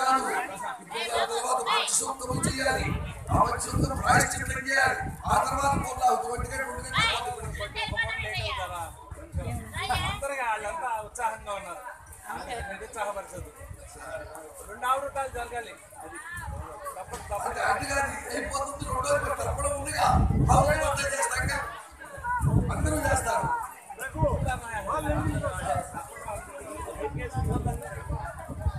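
An elderly man chants loudly into a microphone with animation.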